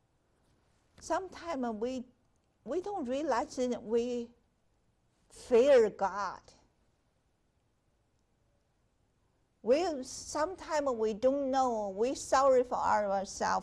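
A woman speaks calmly and clearly into a close microphone, with pauses.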